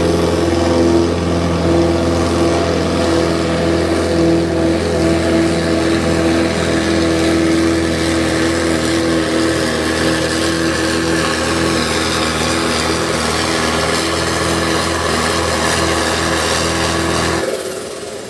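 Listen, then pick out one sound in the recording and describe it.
Big tyres crunch and churn through loose dirt.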